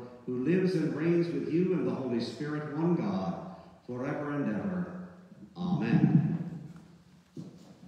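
An elderly man chants a melody in a reverberant hall.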